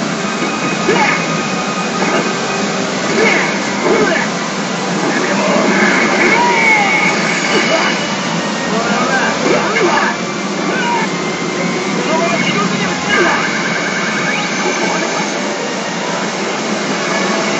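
A gaming machine plays loud electronic music close by.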